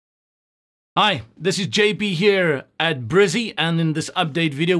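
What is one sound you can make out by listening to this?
A man speaks to the listener close to a microphone, with animation.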